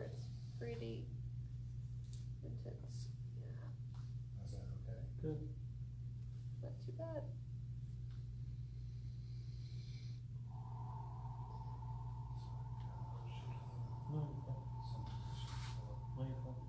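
Hands rub and press on cloth.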